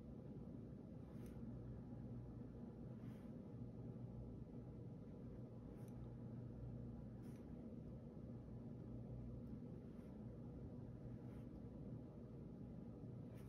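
A pen taps softly on paper.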